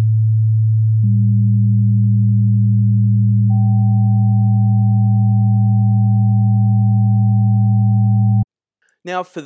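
A second, higher steady tone joins in.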